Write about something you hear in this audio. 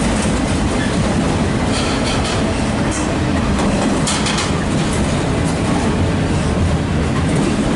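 A freight train rumbles loudly past on the tracks close by.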